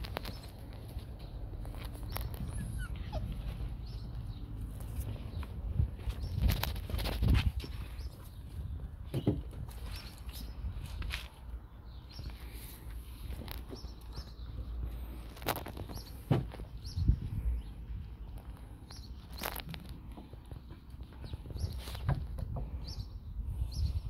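Puppies scuffle and patter on hard ground close by.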